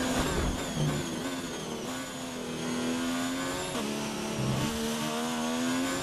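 A racing car engine screams at high revs, its pitch jumping at each gear change.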